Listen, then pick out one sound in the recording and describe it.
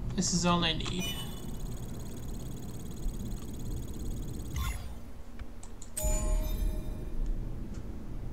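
An arcade machine plays a bright electronic jingle.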